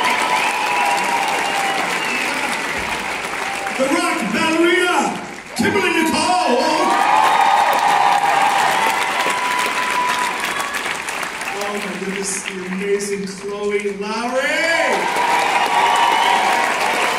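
A man sings through loudspeakers.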